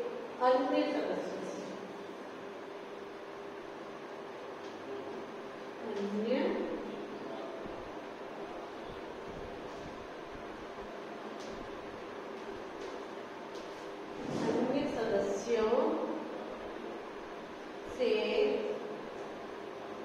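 A woman speaks calmly, in short phrases, close by.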